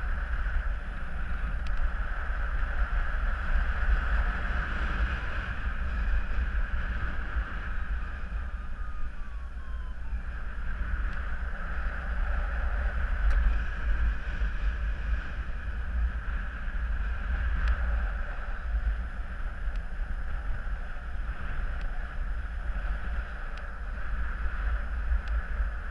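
Wind rushes and buffets steadily outdoors in flight.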